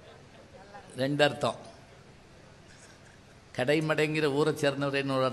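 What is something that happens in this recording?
A middle-aged man speaks forcefully into a microphone, heard through a loudspeaker.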